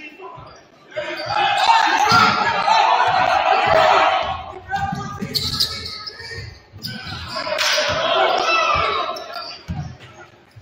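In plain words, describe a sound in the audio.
A crowd cheers and shouts in the stands.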